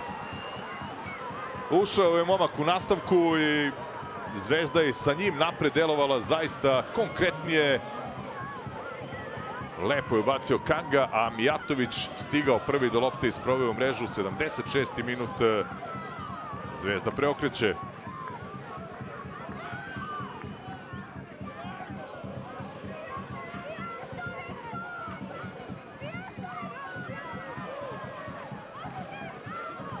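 A crowd cheers in a large stadium.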